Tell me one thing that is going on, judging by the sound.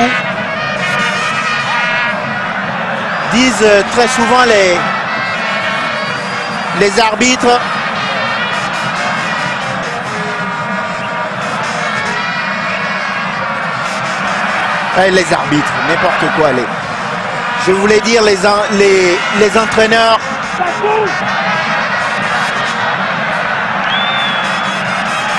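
A large stadium crowd roars and chants steadily outdoors.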